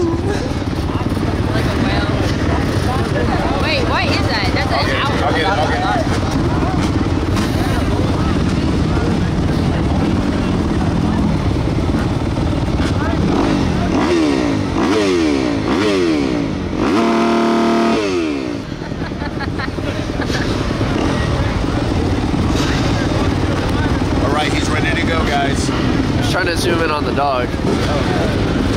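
A man talks close by, outdoors.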